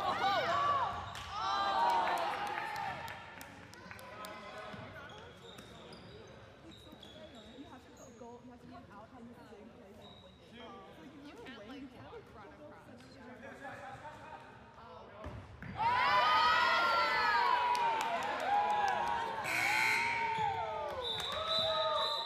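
A ball thuds on a hard floor.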